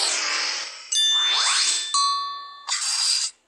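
A bright sparkling chime rings out.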